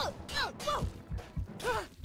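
A mace swings and strikes.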